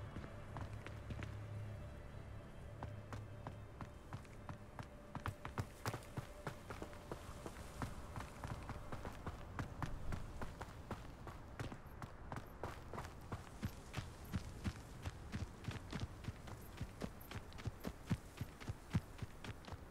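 Footsteps thud quickly on stone and grass.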